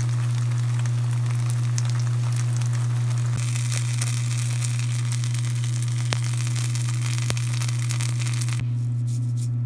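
Batter sizzles in a hot pan.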